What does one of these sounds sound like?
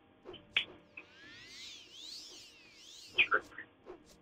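A spell hums with a shimmering, rising whoosh.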